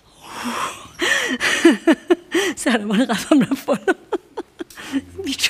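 A woman laughs and talks with animation.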